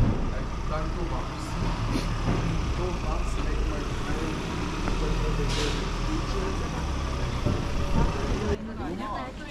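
A van engine rumbles nearby.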